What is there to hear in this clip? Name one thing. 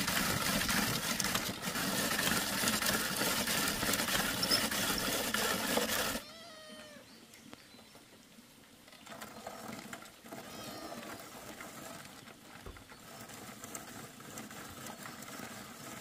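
Cassava root scrapes harshly against a metal grater in steady, rasping strokes.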